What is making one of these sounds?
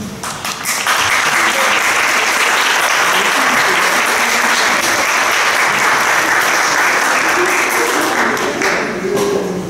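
An audience applauds in a large echoing hall.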